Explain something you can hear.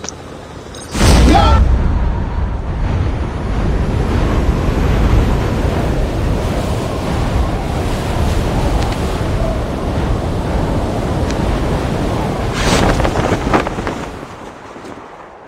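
Wind rushes loudly during a skydive.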